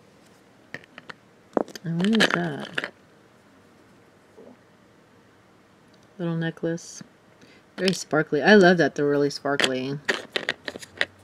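Small plastic pieces click and rattle against a plastic case.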